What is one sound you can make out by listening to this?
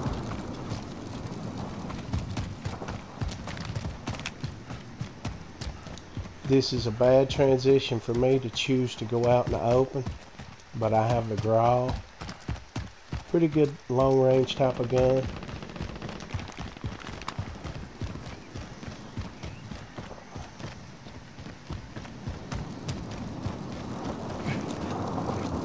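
Footsteps thud quickly over grass and pavement.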